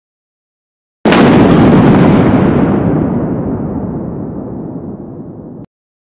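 Thunder cracks loudly and rumbles away.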